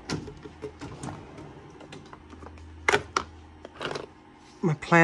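A metal drawer slides open.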